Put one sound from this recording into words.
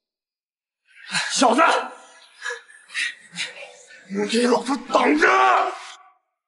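A young man shouts angrily close by.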